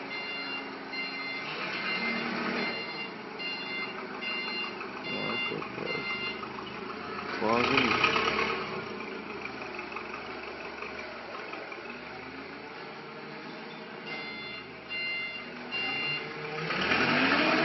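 A truck engine idles with a low hum.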